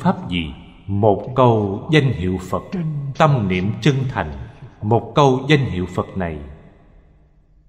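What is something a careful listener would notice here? An elderly man speaks calmly into a microphone, then falls silent.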